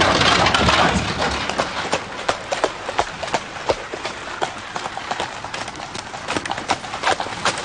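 Horse hooves clop on gravel.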